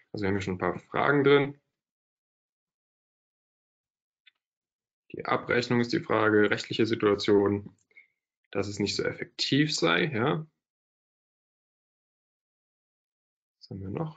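A young man speaks calmly through an online call, pausing between phrases.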